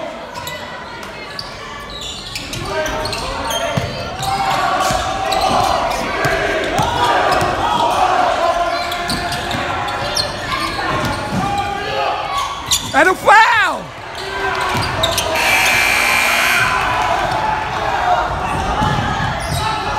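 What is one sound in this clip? Teenage boys call out to each other in an echoing gym.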